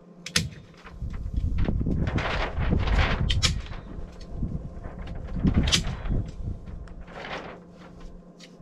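Foil sheeting crinkles and rustles as it is pressed against a wall.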